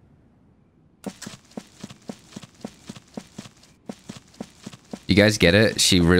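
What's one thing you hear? Footsteps run along a path.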